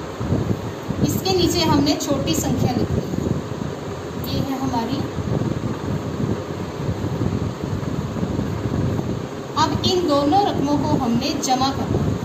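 A woman speaks calmly and clearly, as if explaining.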